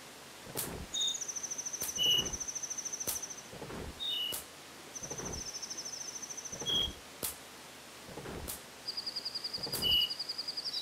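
A video game beeps in quick, steady bursts.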